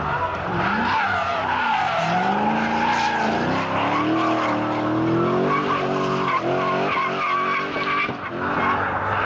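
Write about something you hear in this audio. A car engine roars and revs up and down loudly.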